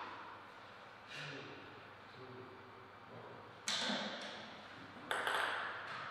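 A table tennis ball bounces on a table with light clicks.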